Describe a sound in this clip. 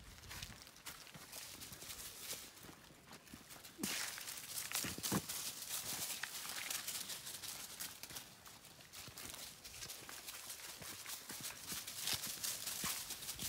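Dry leaves rustle and crunch as dogs run through them.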